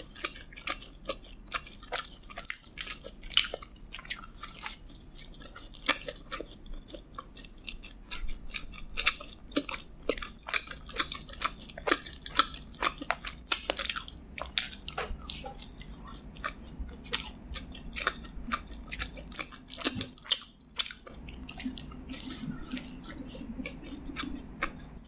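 A young woman chews crunchy food with close, wet mouth sounds.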